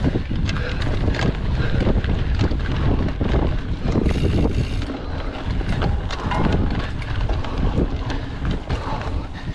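A bicycle frame rattles and clanks over bumps.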